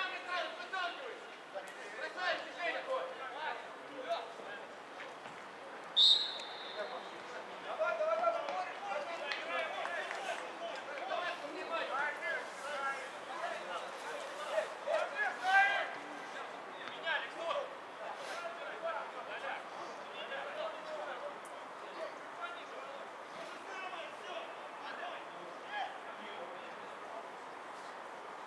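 Footballers shout to each other across an open pitch, heard from a distance.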